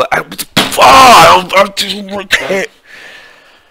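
A young man shouts in frustration close to a headset microphone.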